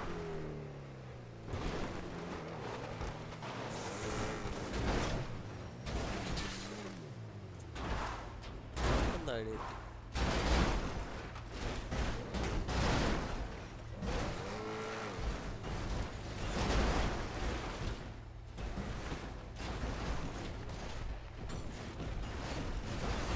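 A car engine revs and whines.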